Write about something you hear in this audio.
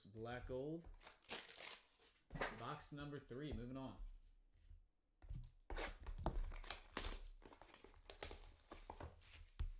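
Card packs and boxes rustle and knock as they are handled.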